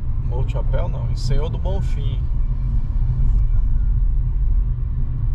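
A car engine hums and tyres rumble steadily on the road from inside the car.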